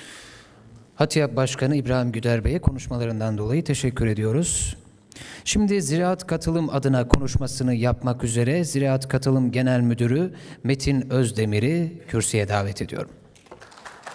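A young man speaks steadily through a microphone in an echoing hall.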